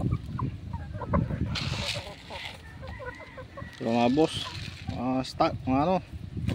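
Chickens cluck and squawk loudly close by.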